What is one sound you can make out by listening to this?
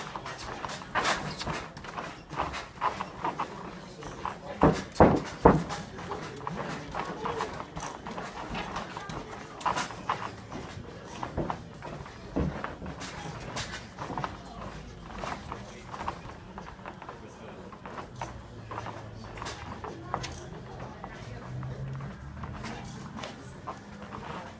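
A boxer's feet shuffle and step on a padded ring canvas.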